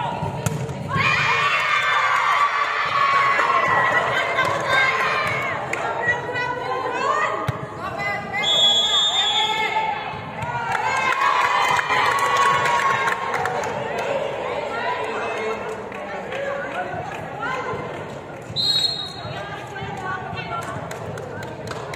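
Young women shout and cheer loudly in a large echoing hall.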